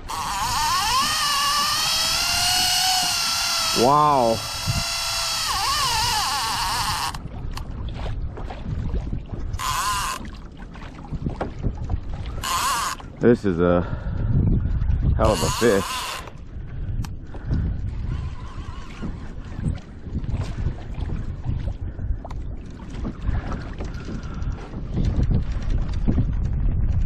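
Wind rumbles across open water.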